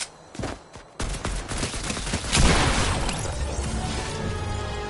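Gunfire blasts out in a rapid burst.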